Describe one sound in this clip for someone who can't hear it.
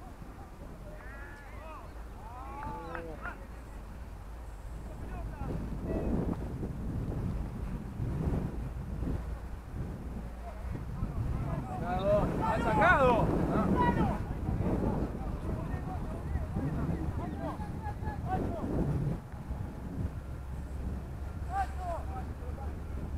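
Young players shout to each other across an open field in the distance.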